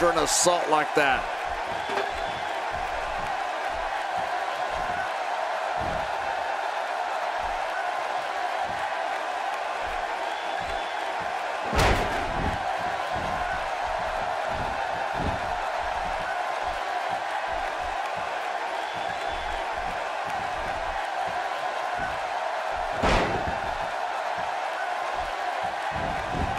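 A large crowd cheers and murmurs steadily throughout.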